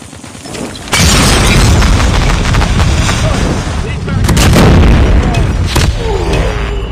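Guns fire rapid bursts of shots.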